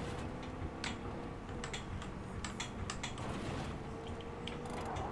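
Loose parts rattle and clatter as a car drives over rough ground.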